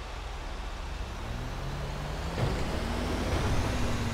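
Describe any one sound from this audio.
A heavy truck engine rumbles as the truck drives past close by.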